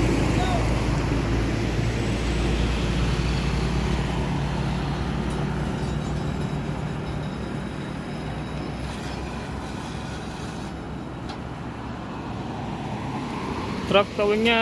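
Motorcycles pass by on the road.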